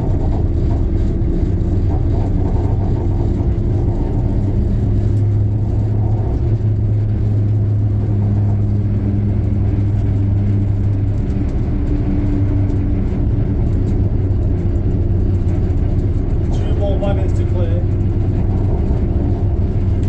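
A train's engine rumbles steadily as it rolls along the track.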